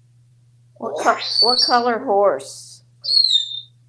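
A parrot talks in a human-like voice, close by.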